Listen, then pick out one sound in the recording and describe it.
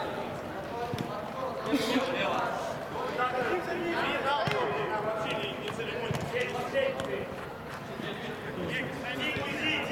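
Several men shout and call out to each other in a large echoing hall.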